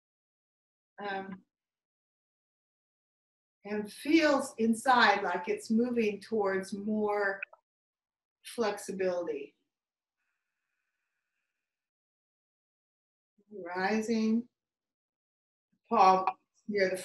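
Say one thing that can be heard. An older woman speaks calmly and with animation, close by.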